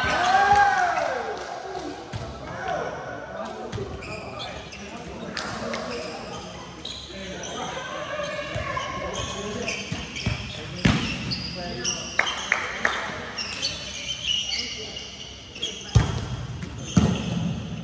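A volleyball is struck by hands, echoing in a large hall.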